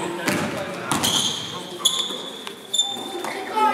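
Sneakers squeak sharply on the floor.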